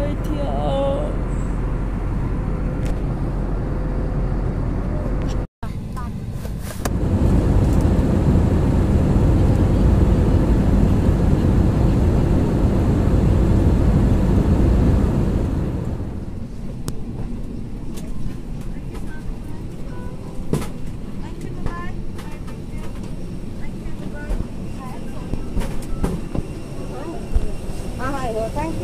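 A steady engine hum drones inside an aircraft cabin.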